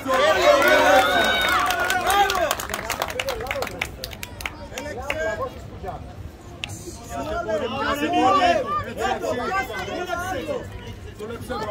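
A crowd of men shouts and cheers loudly outdoors.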